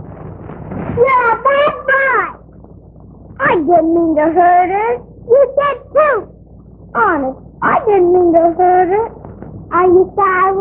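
A young child speaks in a high, lively voice.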